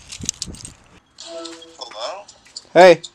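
A phone call tone rings while connecting.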